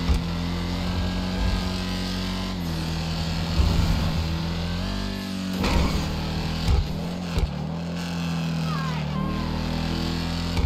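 A powerful car engine roars steadily, its pitch shifting as the car speeds up and slows down.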